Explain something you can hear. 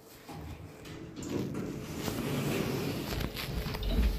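Elevator doors slide open with a rumble.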